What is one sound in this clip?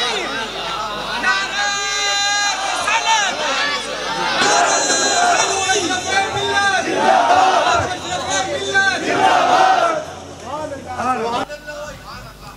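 A crowd of men chants along.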